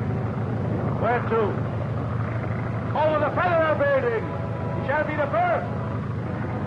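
A man shouts over the engine noise.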